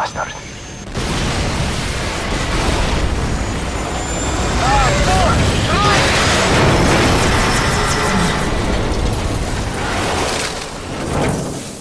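A crashing helicopter roars and grinds along the ground with a loud rumble.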